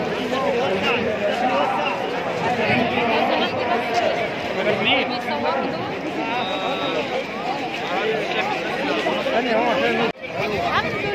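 Men in a crowd shout excitedly.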